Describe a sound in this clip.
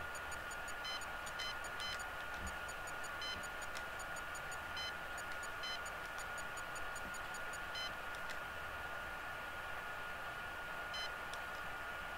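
Short electronic beeps tick quickly, one after another.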